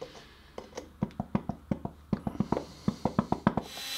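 A ratchet clicks in quick bursts.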